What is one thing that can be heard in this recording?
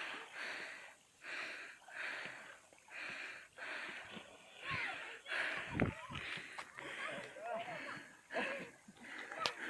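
Water splashes and sloshes close by in repeated bursts.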